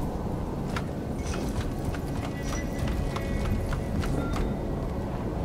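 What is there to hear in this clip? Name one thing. Footsteps clank steadily on the rungs of a metal ladder.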